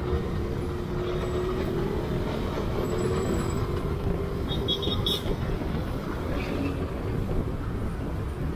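Traffic rumbles along a busy street nearby.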